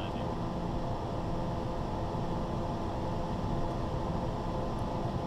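Wind rushes loudly past the aircraft.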